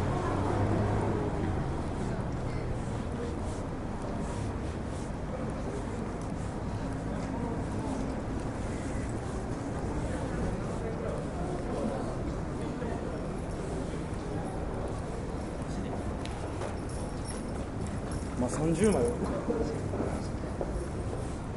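Footsteps tread on pavement at a steady walking pace.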